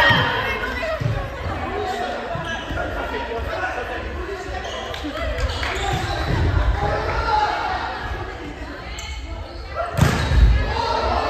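Young women and men chatter and call out in a large echoing hall.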